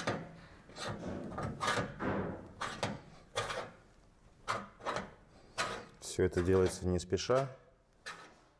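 A tool scrapes in short strokes along a stiff sheet.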